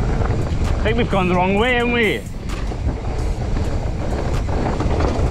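Bicycle tyres roll and rattle over a bumpy dirt trail.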